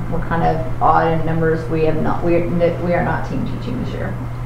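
A woman speaks into a microphone in a room with a slight echo.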